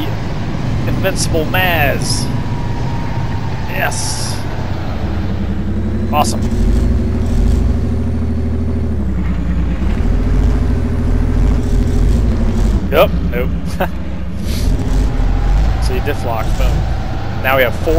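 Truck tyres churn through thick mud.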